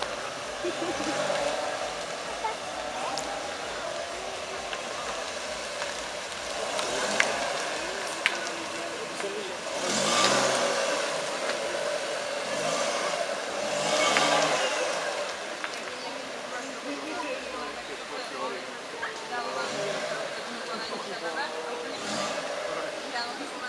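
A car engine hums nearby, rising and falling.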